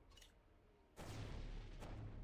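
A lightning bolt strikes with a loud crackling burst.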